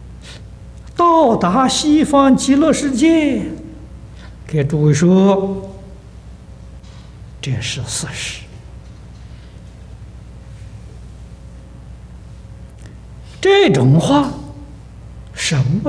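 An elderly man speaks calmly into a microphone, with pauses between phrases.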